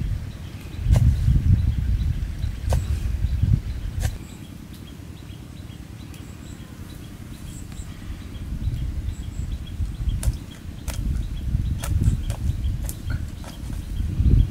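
A blade chops sharply against wood, with scattered knocks.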